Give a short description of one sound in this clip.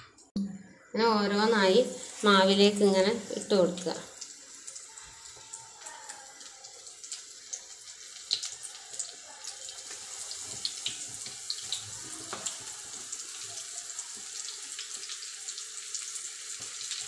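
Hot oil sizzles steadily as food fries.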